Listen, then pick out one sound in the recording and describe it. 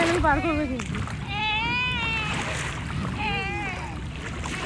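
A small child squeals and babbles close by.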